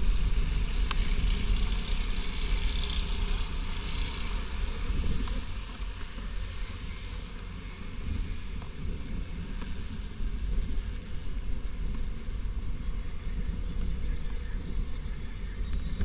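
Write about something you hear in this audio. Wind buffets the microphone steadily outdoors.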